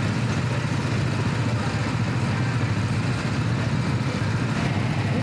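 A go-kart engine drones loudly up close.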